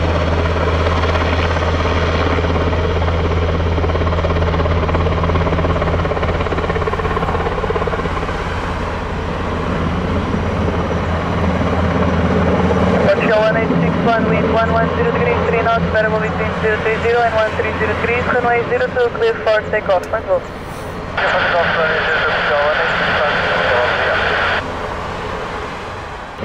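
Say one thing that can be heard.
A twin-turbine military helicopter hovers low and sets down.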